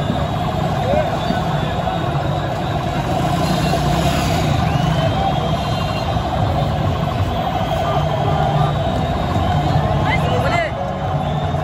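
Men shout and whistle nearby.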